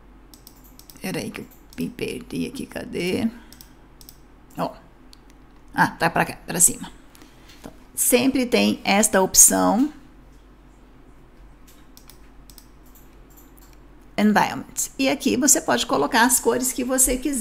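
A woman speaks calmly and clearly into a close microphone, in short bursts with pauses.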